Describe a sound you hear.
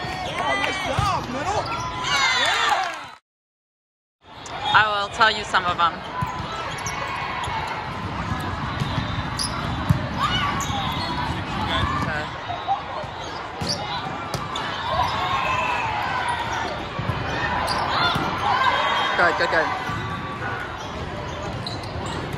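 A crowd of young women cheers and shouts in a large echoing hall.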